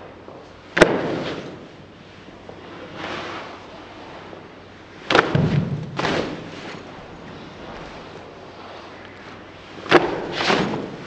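Sharp slaps sound as hands strike arms and bodies.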